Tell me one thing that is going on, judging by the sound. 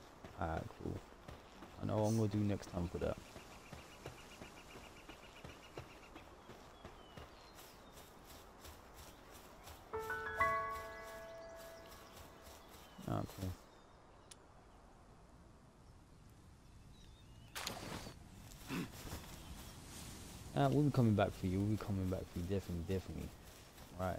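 Footsteps run across grass.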